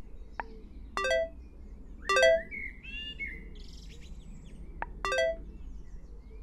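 A short electronic chime rings a few times.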